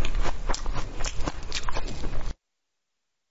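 A young woman gulps a drink close to a microphone.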